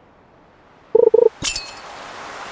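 A short chime rings.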